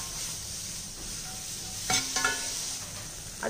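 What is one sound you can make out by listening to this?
A spatula scrapes against a pan.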